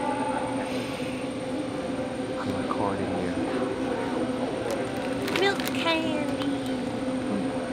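A snack packet crinkles in a hand.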